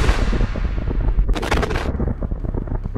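An anti-tank rocket strikes a tank with a sharp blast.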